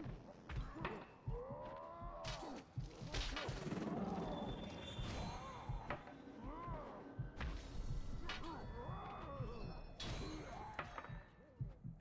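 Swords clash and strike in quick, sharp hits.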